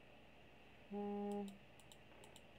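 A short game chime sounds.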